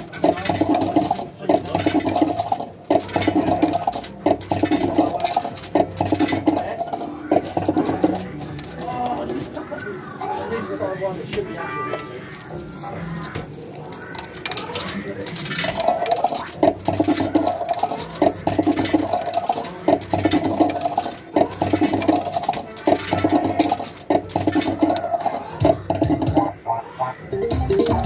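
A slot machine beeps in a rapid, repeating electronic pattern as it counts up.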